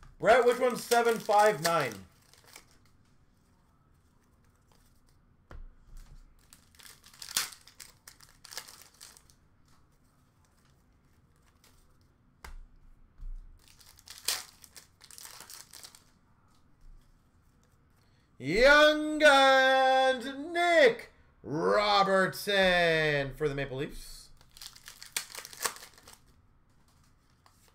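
Foil card packs crinkle and tear open by hand.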